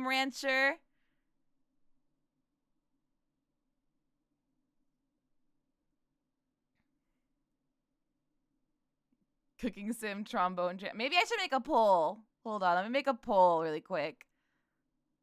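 A young woman speaks animatedly into a microphone, close by.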